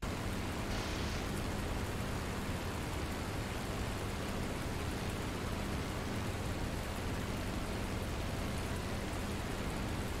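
A propeller aircraft engine roars steadily.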